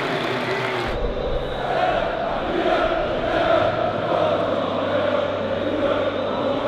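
A group of men chant and shout together in celebration.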